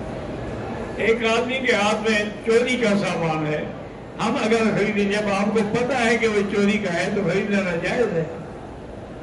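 An elderly man speaks slowly and earnestly into a microphone, in an echoing hall.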